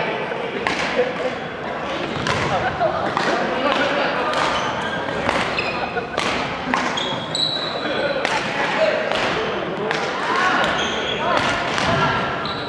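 Sports shoes squeak on a wooden court.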